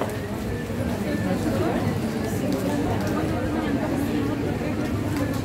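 A woman lectures steadily, heard from across an echoing room.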